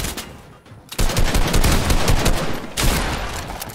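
A gun fires in a quick burst.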